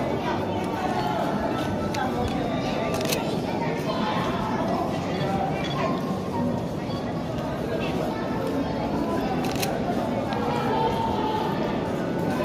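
Footsteps echo on a hard path in a long tunnel.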